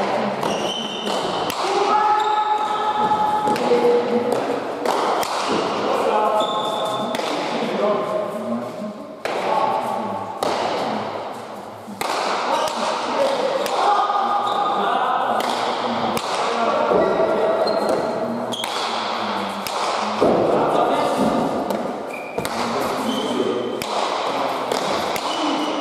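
A hard ball smacks against a wall and echoes around a large hall.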